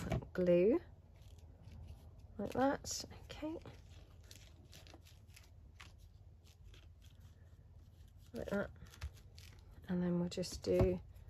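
Paper rustles and crinkles softly as hands handle it.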